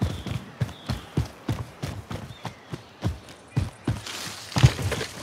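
Footsteps thud quickly and steadily through grass.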